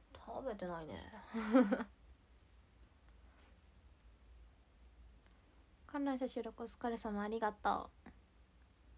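A young woman speaks softly and close by, in short bursts with pauses.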